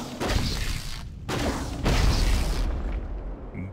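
Fire crackles and roars as a building burns.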